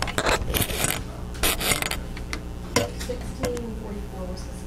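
A man speaks aloud in a room, a short distance away.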